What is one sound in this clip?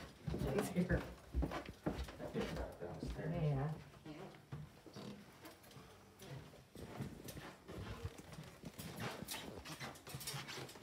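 Footsteps thud on a floor indoors.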